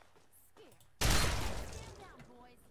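A pistol shot goes off and echoes.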